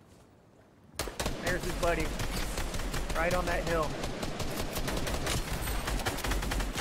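Rapid gunshots crack in a game.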